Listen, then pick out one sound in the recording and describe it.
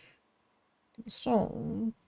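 A short game menu sound plays as an inventory opens.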